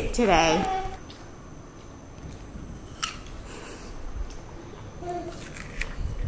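A young child chews food.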